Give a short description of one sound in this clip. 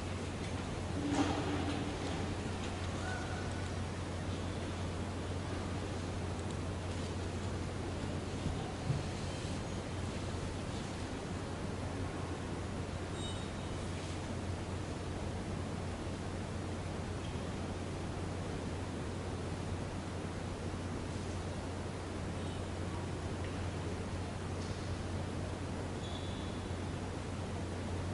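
A hushed crowd in a large echoing hall makes faint scattered shuffles and murmurs.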